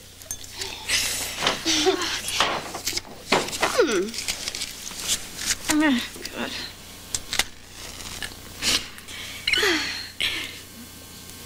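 A second young woman answers cheerfully.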